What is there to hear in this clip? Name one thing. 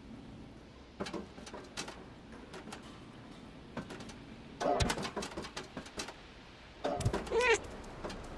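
A cat's paws patter and clatter across a corrugated metal roof.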